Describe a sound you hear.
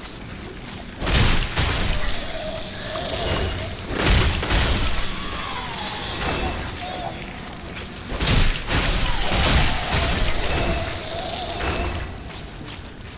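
Sword blows clang and thud in a fight.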